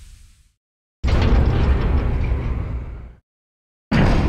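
A heavy metal lift door rumbles and grinds open.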